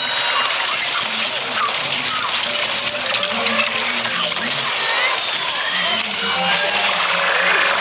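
Rapid cartoonish blaster shots fire in a noisy fight.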